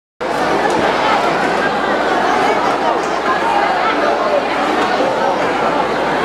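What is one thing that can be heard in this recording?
A crowd of people chatter and talk in a large echoing hall.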